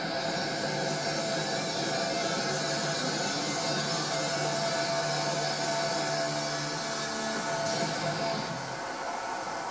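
A young girl sings into a microphone, heard through a television speaker.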